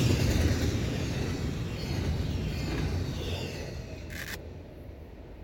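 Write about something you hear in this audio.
A freight train rumbles past loudly and fades away.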